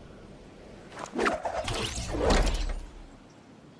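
A glider snaps open with a sudden loud whoosh.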